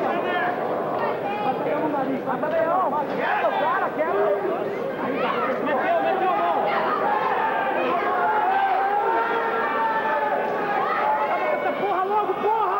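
A crowd in a large echoing hall shouts and cheers.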